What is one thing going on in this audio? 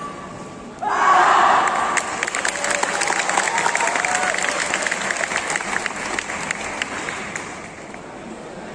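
An audience cheers and applauds in a large echoing hall.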